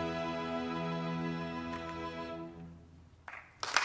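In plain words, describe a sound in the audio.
An orchestra plays a sustained chord that fades away.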